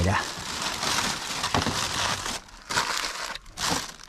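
Aluminium foil crinkles as it is handled.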